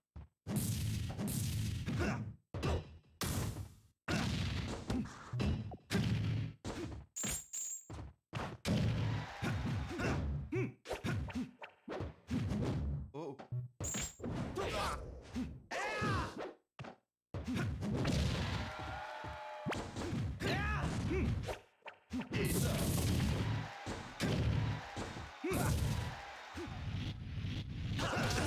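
Video game fighting sounds of hits and whooshes ring out.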